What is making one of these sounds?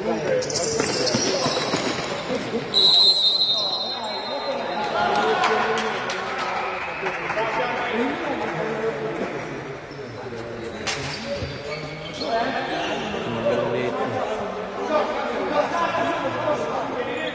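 Men shout to each other in a large echoing hall.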